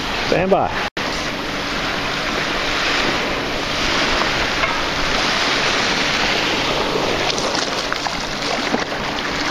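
Small waves wash and lap gently onto a shore.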